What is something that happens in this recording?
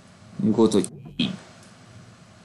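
A young man speaks briefly and casually, close to a microphone.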